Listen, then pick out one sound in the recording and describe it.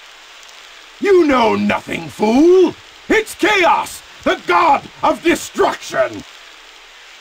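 A man shouts angrily in a theatrical voice.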